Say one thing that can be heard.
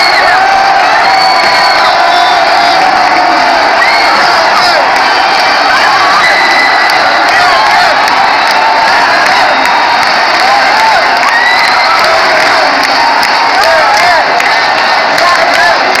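Fans close by cheer and shout loudly.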